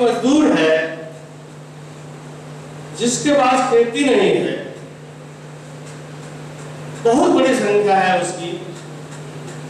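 A middle-aged man speaks slowly into a microphone, heard through a loudspeaker.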